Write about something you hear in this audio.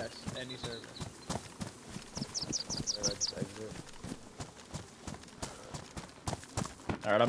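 Footsteps thud quickly on grass and dirt.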